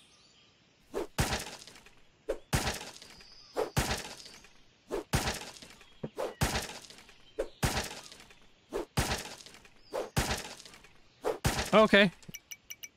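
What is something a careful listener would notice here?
Fists thump repeatedly against a tree trunk.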